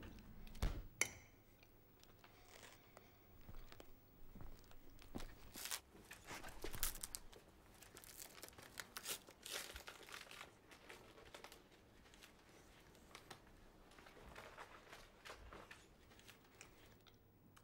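Paper rustles and crinkles as food is handled close by.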